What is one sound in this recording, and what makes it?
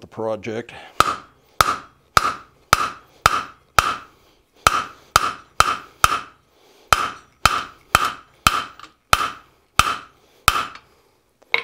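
A hammer rings as it strikes metal on an anvil in a fast, steady rhythm.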